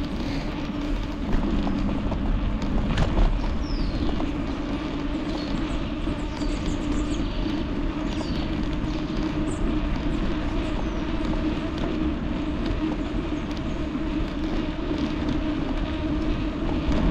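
Bicycle tyres hum along a smooth paved path.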